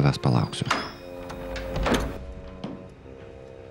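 An elderly man groans and speaks in distress nearby.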